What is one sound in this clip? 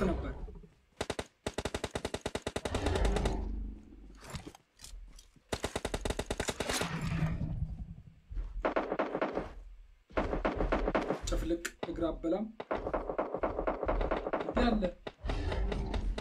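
Gunfire rattles in rapid bursts.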